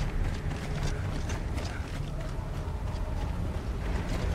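Heavy armoured footsteps thud on stone as a soldier runs.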